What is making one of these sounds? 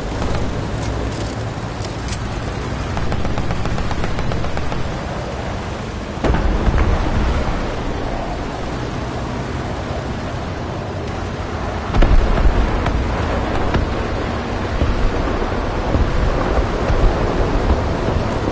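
A tank engine rumbles steadily as tracks clank over the ground.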